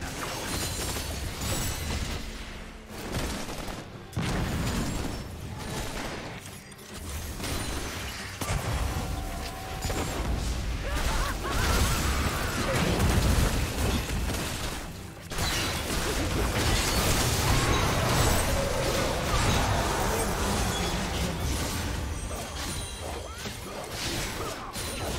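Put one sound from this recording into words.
Spell effects whoosh, zap and crackle in a game fight.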